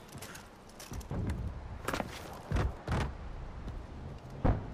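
Heavy footsteps thud on wooden boards.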